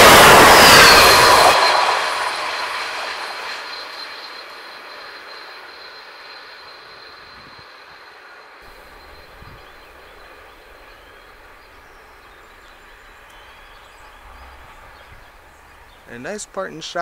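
A passenger train rushes past close by, its wheels roaring on the rails and then fading into the distance.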